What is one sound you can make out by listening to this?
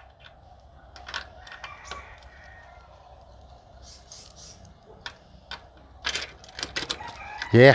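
A metal gate rattles and clicks as it is handled.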